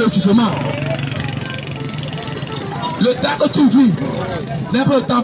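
Men and women chatter loudly nearby in a busy outdoor crowd.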